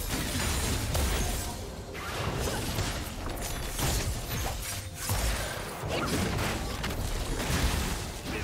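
Magical spell effects whoosh and crackle during a battle.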